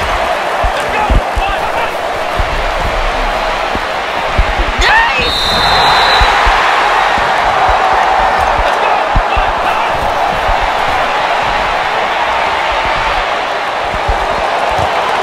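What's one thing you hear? A large crowd roars steadily and swells into louder cheering.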